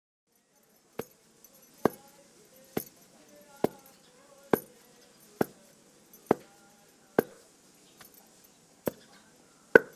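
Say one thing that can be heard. A wooden pestle pounds rhythmically into a stone mortar.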